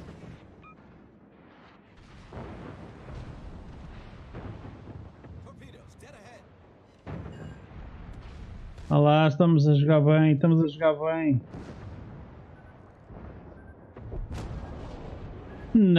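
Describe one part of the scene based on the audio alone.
Shells explode with deep rumbling bursts.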